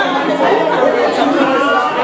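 A girl speaks into a microphone over a loudspeaker.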